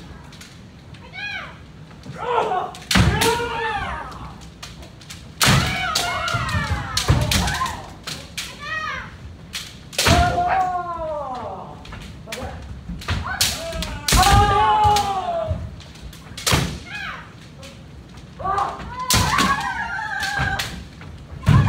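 Bamboo swords clack and strike against each other.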